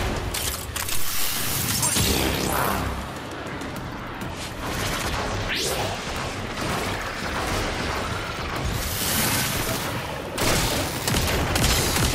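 Energy blasts burst and crackle loudly.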